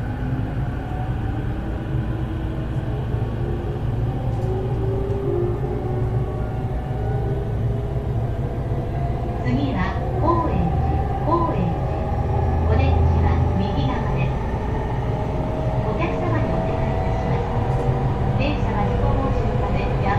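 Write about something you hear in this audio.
The traction motors of an E231 series electric commuter train whine as it runs.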